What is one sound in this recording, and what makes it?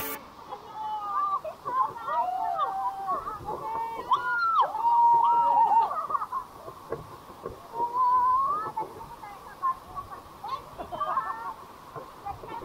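Young women laugh and shriek excitedly close by.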